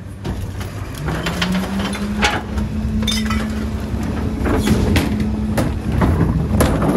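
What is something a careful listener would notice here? A garbage truck's compactor whines as it runs.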